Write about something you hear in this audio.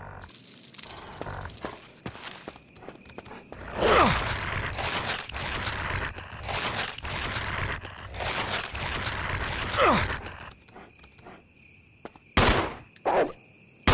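Footsteps clatter on a metal walkway.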